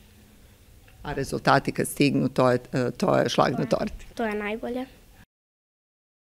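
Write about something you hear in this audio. A young girl speaks calmly into a microphone.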